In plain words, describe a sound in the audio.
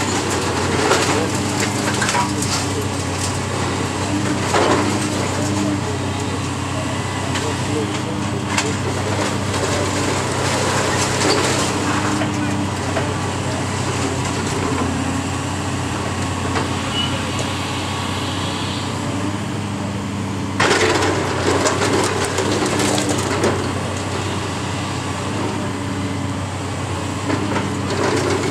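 Masonry and debris crash and crumble as a building is torn down.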